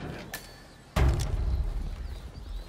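A heavy lid slams shut with a loud bang.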